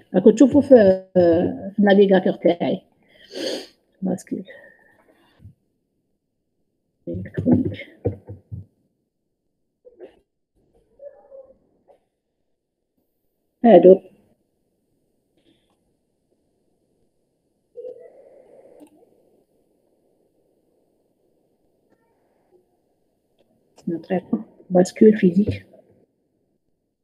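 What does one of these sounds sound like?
A woman speaks through an online call, in short bursts with pauses.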